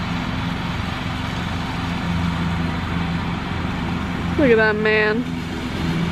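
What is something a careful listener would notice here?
A riding lawn mower engine drones steadily close by.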